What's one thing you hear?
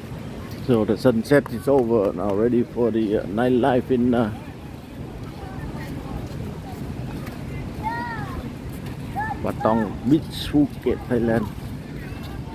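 A young child chatters nearby.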